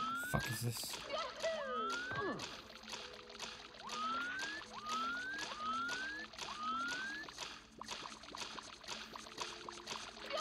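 A game character splashes through shallow water with quick steps.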